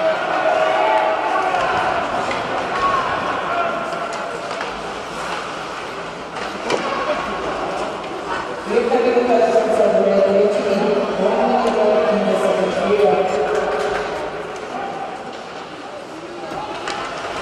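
A crowd chants loudly in a large echoing arena.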